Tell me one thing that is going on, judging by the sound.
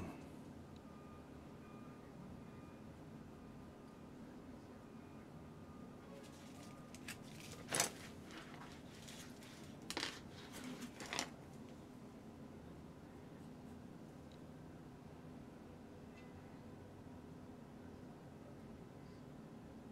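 A paintbrush brushes softly across a canvas.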